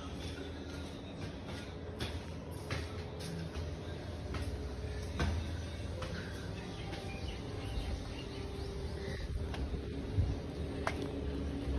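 Footsteps scuff on a concrete floor.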